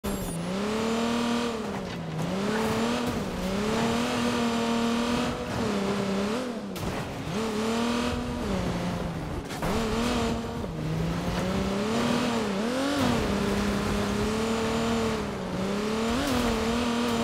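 A car engine revs up and down as a car drives over rough ground.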